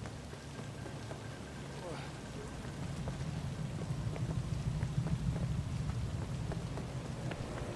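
Rain pours steadily.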